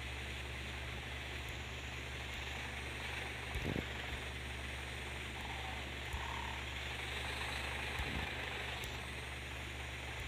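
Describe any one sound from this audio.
A truck engine rumbles steadily at idle.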